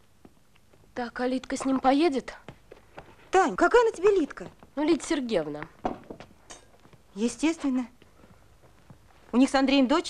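A woman speaks close by.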